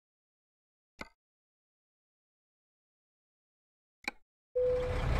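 Menu clicks sound softly.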